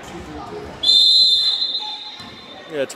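A referee's whistle blows sharply in a large echoing gym.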